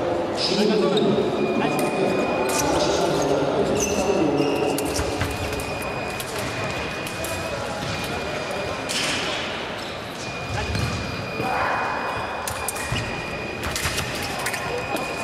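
Fencers' shoes squeak and thud on the floor.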